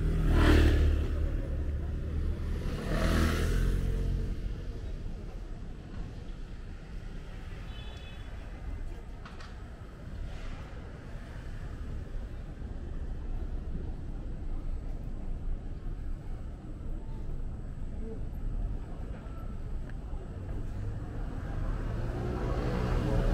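Traffic hums steadily in the distance outdoors.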